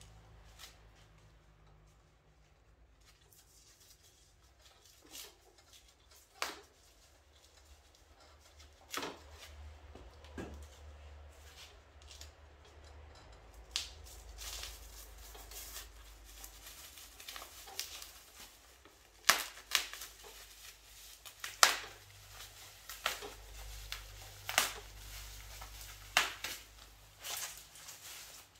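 Plastic wrapping crinkles and rustles as it is peeled off.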